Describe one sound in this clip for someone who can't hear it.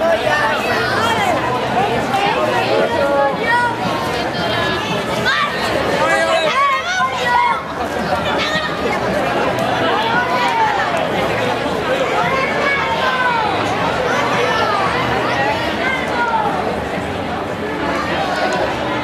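A crowd of children and adults chatter and call out outdoors.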